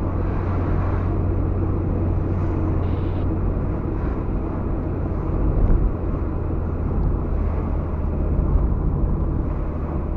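Trucks rush past in the opposite direction.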